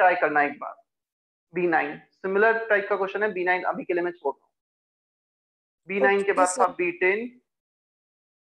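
A young man speaks calmly and clearly into a close microphone, explaining.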